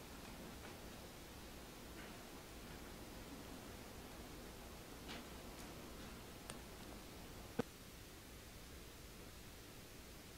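Footsteps walk slowly across a hard floor in a large, quiet hall.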